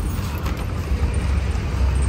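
Things rustle as they are moved in a car boot.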